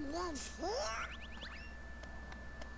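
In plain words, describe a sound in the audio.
A cartoon duck squawks in a high, garbled voice.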